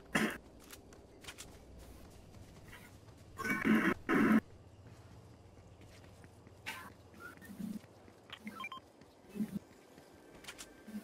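Footsteps patter quickly on grass and pavement.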